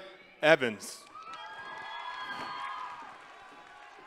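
Hands clap in applause in a large echoing hall.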